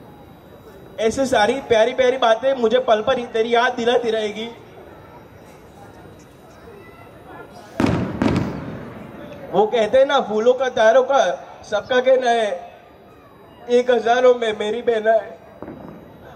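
A man speaks animatedly into a microphone, heard over a loudspeaker.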